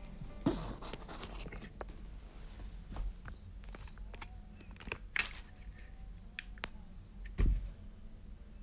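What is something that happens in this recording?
Fabric rustles and bumps close by.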